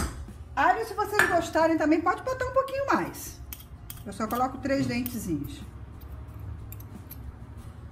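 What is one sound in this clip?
A spoon stirs a thick, crumbly mixture in a metal bowl.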